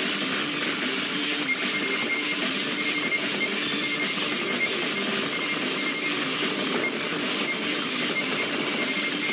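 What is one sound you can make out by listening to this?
Upbeat electronic music plays throughout.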